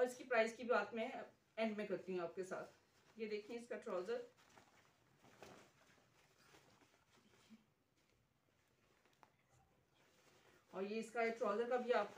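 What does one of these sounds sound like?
Cloth rustles as it is unfolded and held up.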